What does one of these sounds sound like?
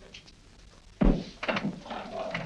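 A piece of furniture scrapes and knocks.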